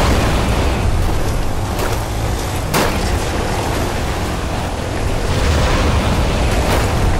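A game vehicle's engine roars steadily as it drives.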